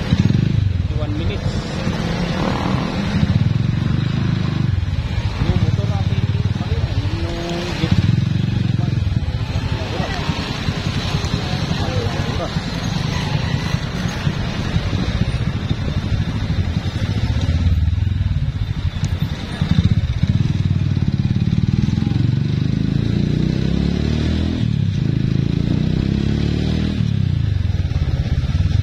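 A motorcycle engine hums steadily up close while riding.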